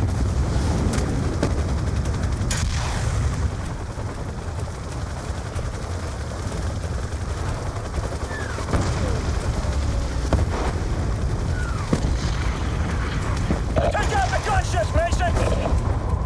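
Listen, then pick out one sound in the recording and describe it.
Helicopter rotors thump and whir overhead.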